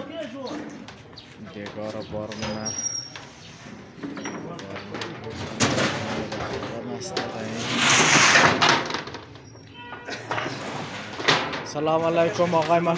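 Several men talk nearby with animation.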